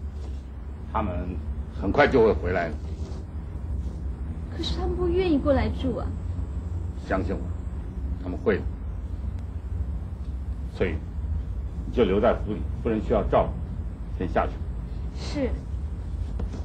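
A man speaks in a firm, steady voice.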